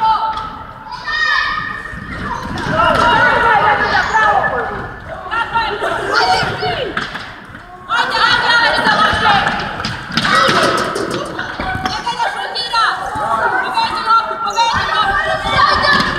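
Young boys shout and call out to each other in a large echoing hall.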